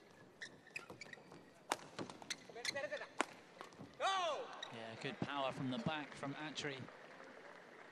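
Shoes squeak sharply on a court floor.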